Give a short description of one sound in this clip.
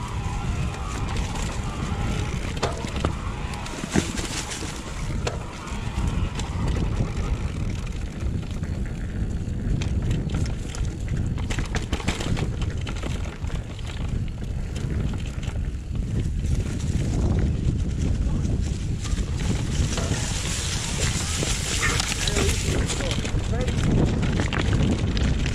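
Wind rumbles steadily across a microphone outdoors.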